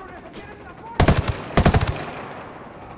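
A rifle fires two loud, sharp shots.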